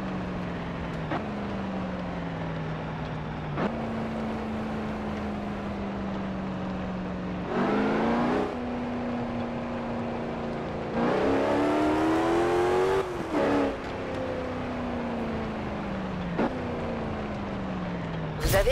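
A car engine hums steadily and revs up and down as gears shift.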